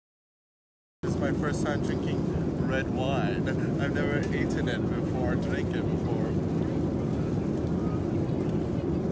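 A young man talks and laughs up close.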